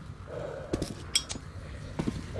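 A lighter clicks open and flares.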